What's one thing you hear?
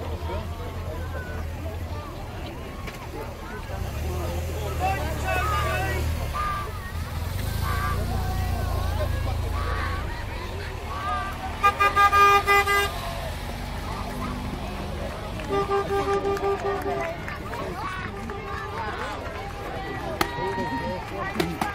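A crowd chatters and cheers along a roadside outdoors.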